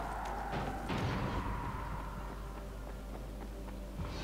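Footsteps crunch over gritty debris.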